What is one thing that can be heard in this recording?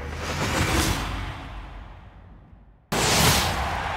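A sports car engine roars past.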